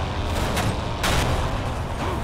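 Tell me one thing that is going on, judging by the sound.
Glass shatters and metal crunches in a sudden crash.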